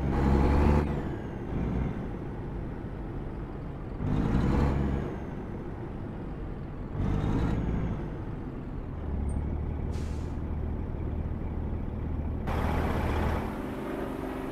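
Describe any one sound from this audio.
A truck engine rumbles at idle and revs up in bursts.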